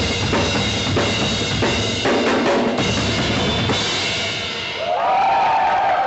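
A drummer plays a drum kit hard, with fast beats and crashing cymbals.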